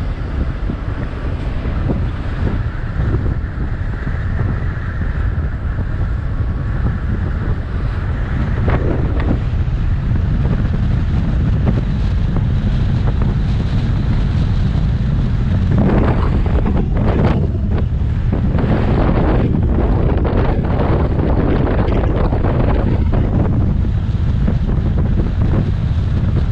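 A vehicle's engine hums steadily as it drives along a road.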